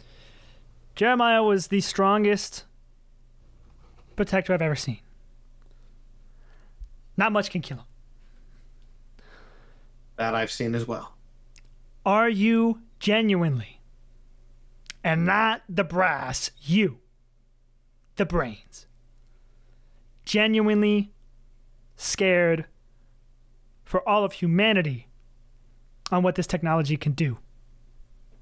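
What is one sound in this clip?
A young man speaks with animation into a close microphone over an online call, in short bursts with pauses.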